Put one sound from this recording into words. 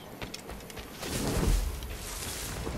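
Leaves rustle loudly as someone crouches into bushes.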